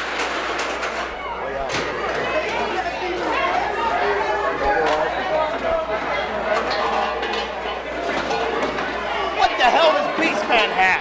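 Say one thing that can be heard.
Several men shout and talk loudly nearby.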